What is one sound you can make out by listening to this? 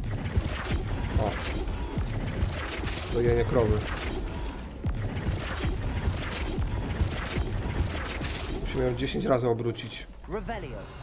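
Magic spells crackle and burst in fast combat.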